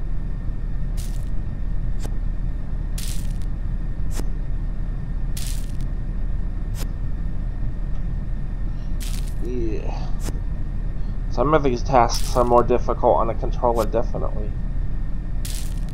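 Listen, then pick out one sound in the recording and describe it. A short whoosh plays each time a leaf is swept away.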